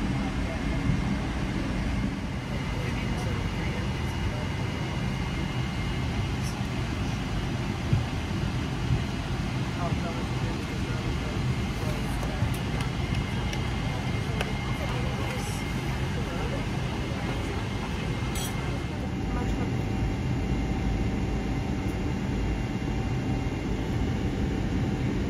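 A jet airliner's cabin hums with a steady low engine drone.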